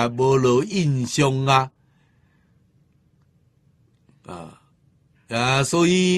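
An elderly man speaks calmly and warmly into a close microphone, pausing between phrases.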